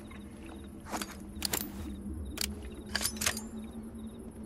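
A pistol is reloaded with sharp metallic clicks.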